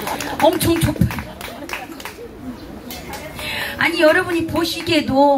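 A woman sings loudly into a microphone over a loudspeaker.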